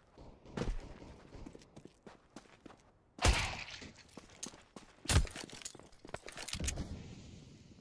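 Footsteps tap on hard ground, close by.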